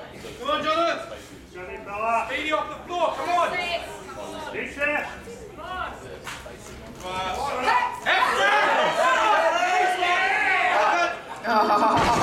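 Spectators shout loud encouragement.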